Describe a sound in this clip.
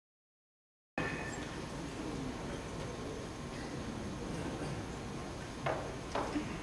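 Several men murmur quietly in a large hall.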